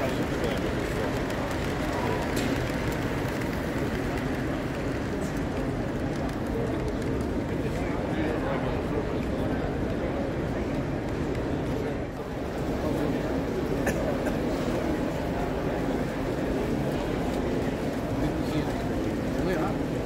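A model train rumbles and clicks along the tracks.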